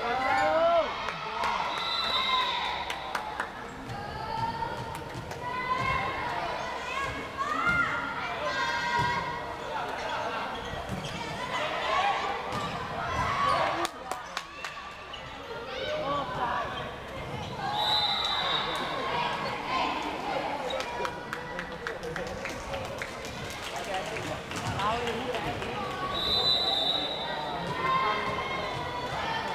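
Young women shout and call out to each other in a large echoing hall.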